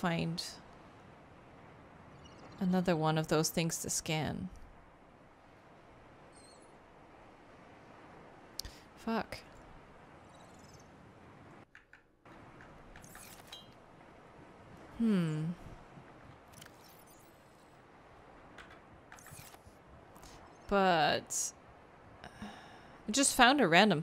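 A young woman speaks in short bursts close to a microphone.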